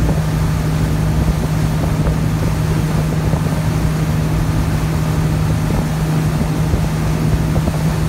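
A motorboat engine drones steadily at speed.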